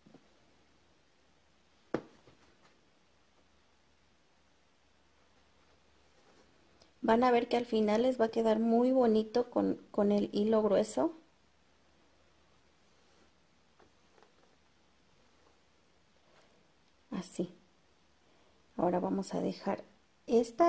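Embroidery thread rasps softly as it is pulled through fabric.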